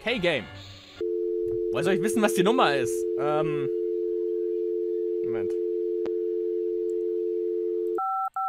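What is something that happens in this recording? A phone dial tone hums steadily.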